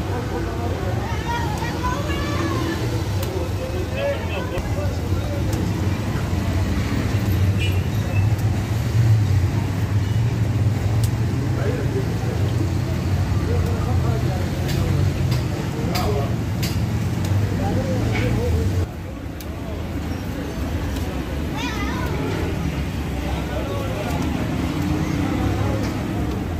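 Dough slaps softly between a man's hands.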